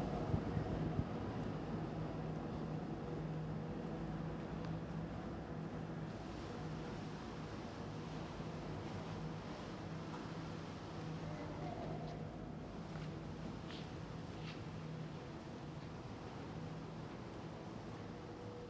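A mixed choir sings slowly in a large echoing hall.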